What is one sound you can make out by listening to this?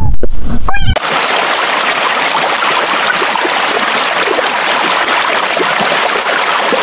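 Water bubbles and rushes underwater.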